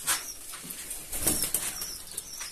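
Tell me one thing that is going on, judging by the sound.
A pigeon flaps its wings briefly.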